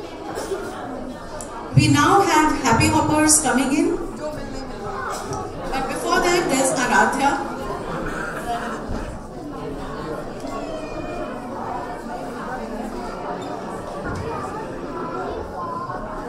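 A woman reads out over a microphone and loudspeakers in a large echoing space.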